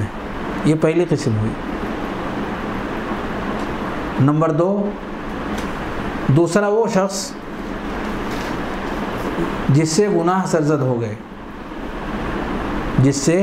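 A middle-aged man speaks calmly into a microphone in short bursts with long pauses.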